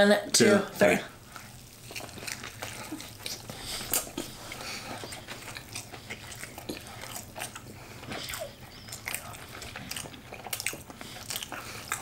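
A man chews food noisily, close to a microphone.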